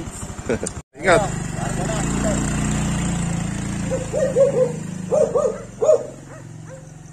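A motorbike engine idles and then pulls away, fading into the distance.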